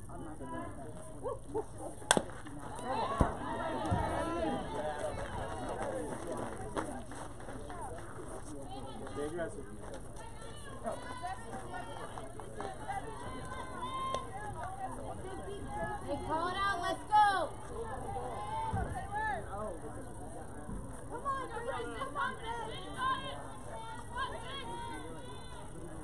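Young women call out and cheer from some distance away.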